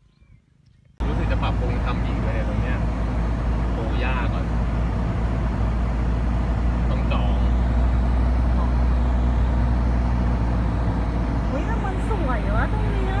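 A vehicle engine hums steadily with road rumble.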